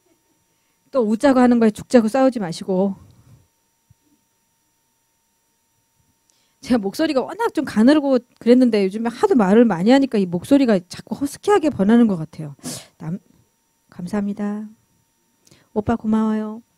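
A woman speaks clearly and calmly through a microphone.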